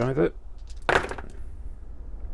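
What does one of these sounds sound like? Dice clatter and roll in a tray.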